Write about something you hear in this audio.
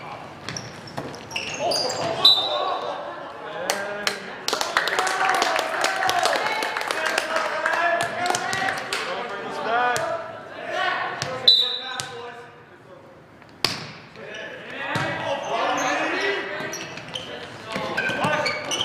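Players call out and shout to each other.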